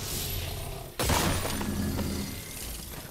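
A sword slashes with a sharp whoosh and a burst of impact.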